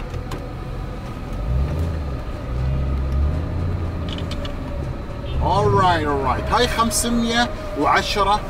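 A car engine hums while driving.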